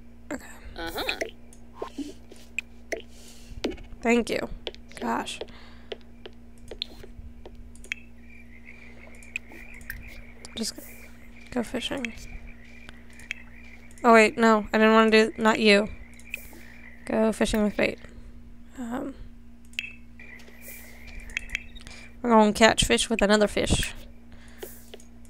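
A young woman talks casually into a close microphone, in short bursts.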